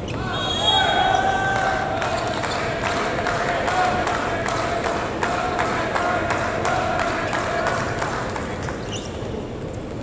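Players call out with loud voices in a large echoing hall.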